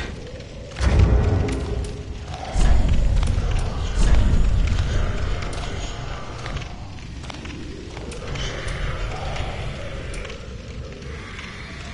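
Soft menu clicks tick one after another.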